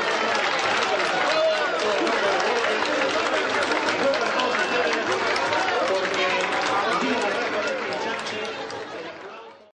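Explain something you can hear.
A crowd claps hands outdoors.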